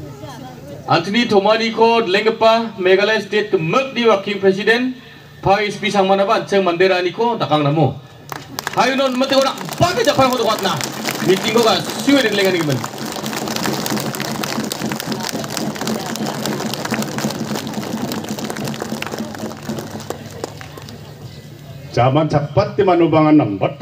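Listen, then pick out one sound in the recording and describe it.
A man speaks with animation through a microphone and loudspeaker outdoors.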